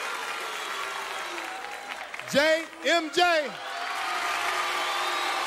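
An audience cheers and murmurs.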